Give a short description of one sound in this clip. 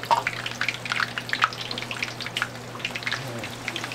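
Water pours from a kettle into a bowl.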